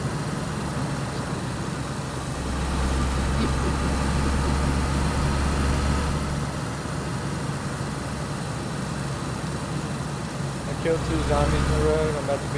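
Tyres crunch on a gravel road.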